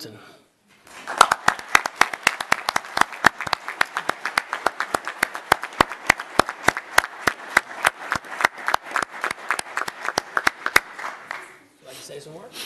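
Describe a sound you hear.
People applaud with many hands clapping.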